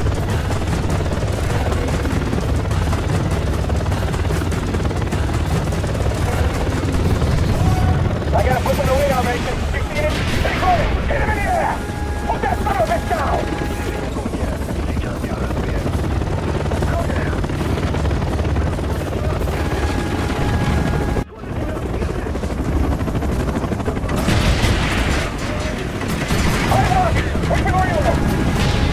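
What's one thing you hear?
A helicopter's rotor thumps and drones steadily.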